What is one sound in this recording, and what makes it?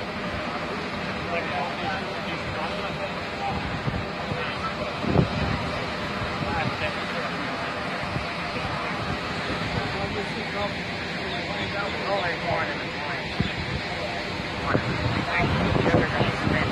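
Surf washes steadily onto the shore.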